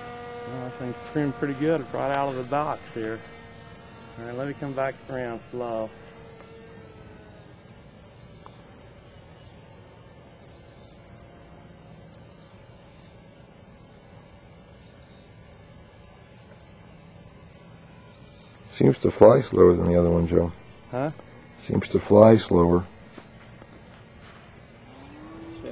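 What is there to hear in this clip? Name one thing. A small propeller plane drones steadily overhead.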